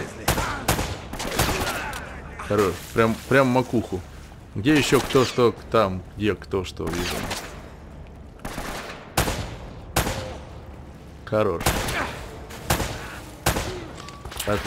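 Pistol shots ring out one at a time, echoing.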